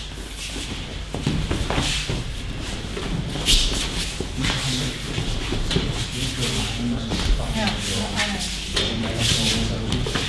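Bare feet shuffle and slide on mats.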